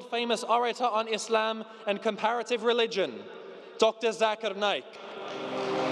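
A young man speaks with animation through a microphone in a large hall.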